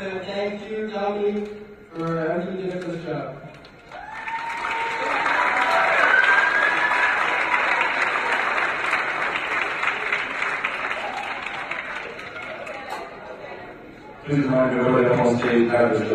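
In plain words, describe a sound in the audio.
A man speaks through a loudspeaker with animation in a large hall.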